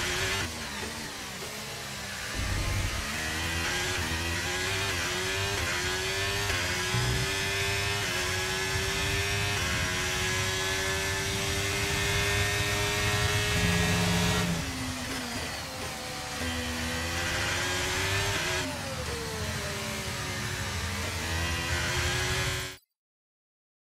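A racing car engine screams loudly, rising and falling in pitch as gears shift.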